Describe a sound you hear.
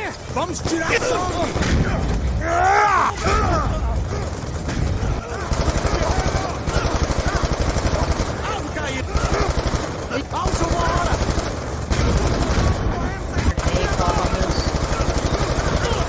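Rifles fire in rapid bursts of gunshots.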